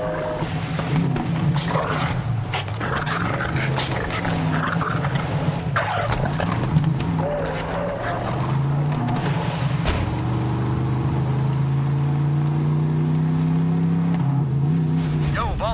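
A buggy engine revs and hums, rising and falling in pitch.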